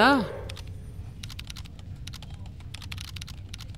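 Fingers tap quickly on a computer keyboard.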